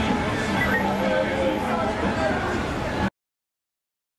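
A large engine idles loudly nearby.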